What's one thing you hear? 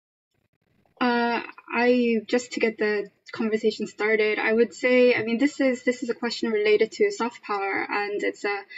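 A young woman speaks calmly and steadily over an online call.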